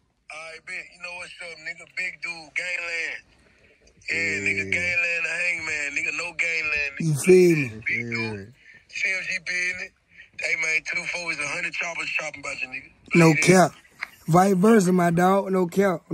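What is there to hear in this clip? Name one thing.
A young man talks with animation through a phone's speaker on a video call.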